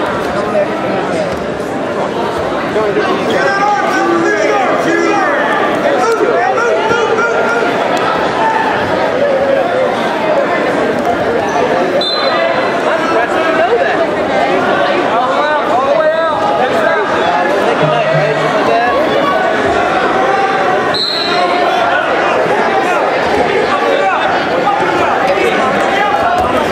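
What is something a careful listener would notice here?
A crowd of spectators shouts and cheers throughout, echoing in a large hall.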